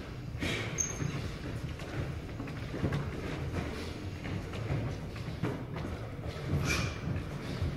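Footsteps shuffle and squeak on a wooden floor in a large echoing hall.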